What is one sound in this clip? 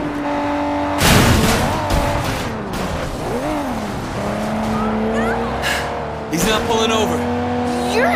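Tyres screech as a car skids and slides.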